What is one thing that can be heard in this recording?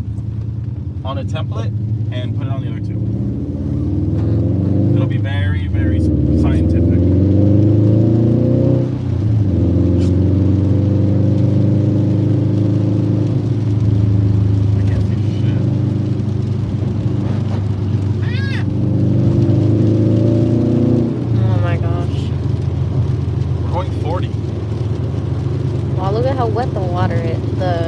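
Music plays loudly from a car stereo.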